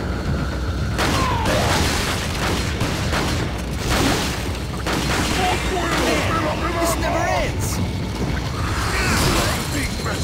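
A shotgun fires loud blasts several times indoors.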